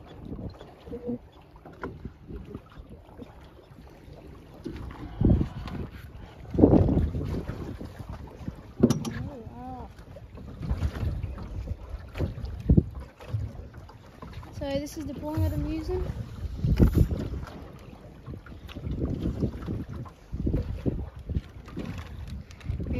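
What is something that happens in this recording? Waves slosh and lap nearby.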